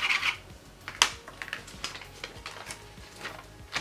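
Paper crinkles softly as hands press it flat.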